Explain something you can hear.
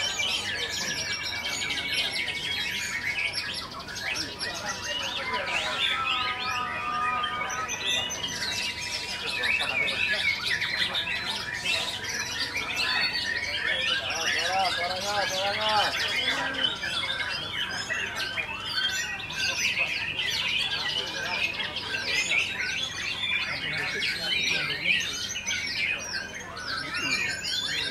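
Songbirds sing busily, with fast chirps, trills and whistles.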